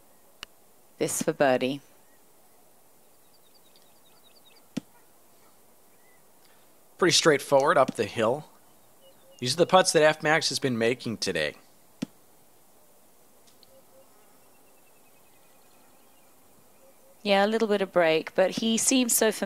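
A man speaks casually through a webcam microphone in short bursts.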